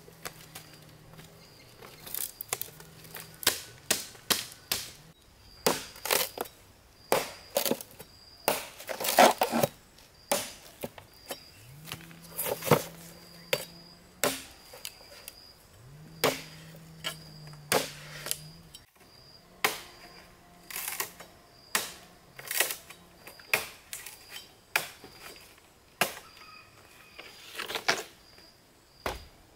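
A machete chops and splits bamboo with sharp knocks.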